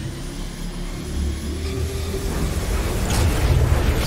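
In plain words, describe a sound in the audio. An electric bolt crackles and buzzes loudly.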